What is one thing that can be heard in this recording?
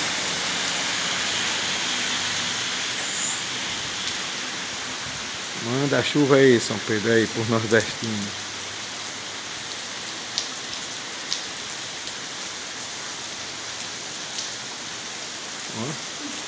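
Steady rain falls and splashes on a wet street outdoors.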